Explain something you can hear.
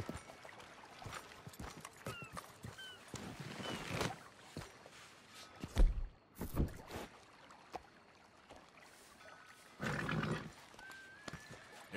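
A horse's hooves clop on rock.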